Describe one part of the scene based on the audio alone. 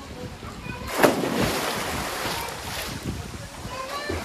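Water splashes and churns as a swimmer kicks.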